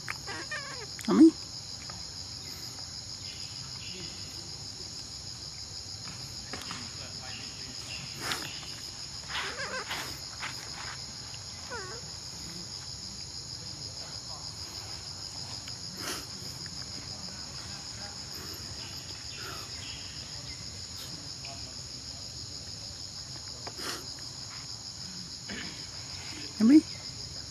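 A baby monkey gives short high squeaks.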